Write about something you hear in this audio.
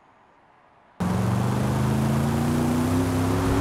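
A car engine idles and revs up steadily.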